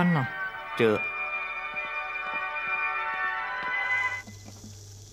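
A gramophone plays music.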